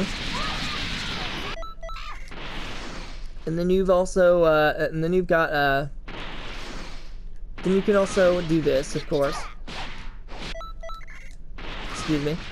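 Energy blasts roar and crackle in bursts of rushing noise.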